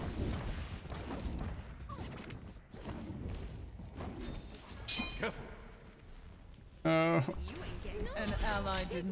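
Fantasy battle sound effects whoosh and clash.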